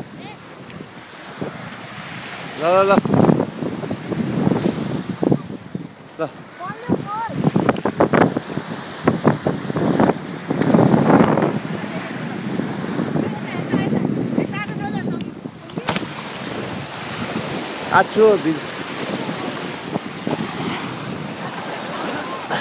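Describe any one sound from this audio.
Small waves splash and wash onto the shore.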